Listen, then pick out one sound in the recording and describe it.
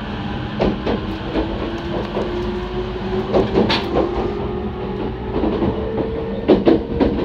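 Traction motors of an electric commuter train whine, slowly rising in pitch.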